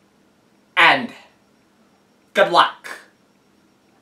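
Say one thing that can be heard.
A young woman speaks loudly close by in short bursts.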